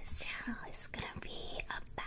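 Hair rustles as a young woman runs her hands through it.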